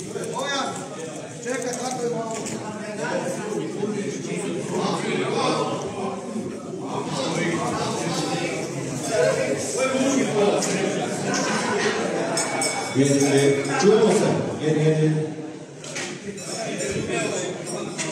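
A crowd of men and women chatter in an echoing hall.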